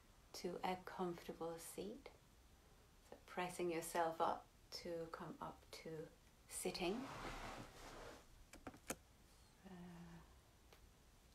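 A woman talks calmly and warmly close to a microphone, with pauses.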